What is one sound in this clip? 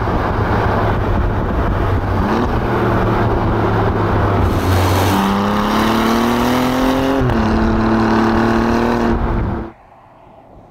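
Tyres rumble on rough asphalt.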